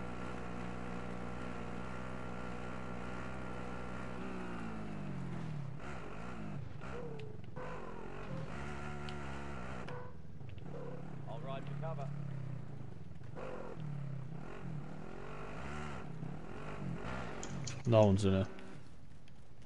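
A quad bike engine drones and revs as the bike drives along.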